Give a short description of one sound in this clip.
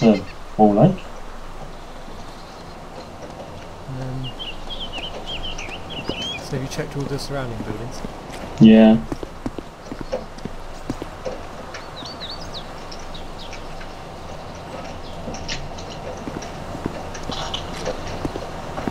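Footsteps scuff slowly on concrete.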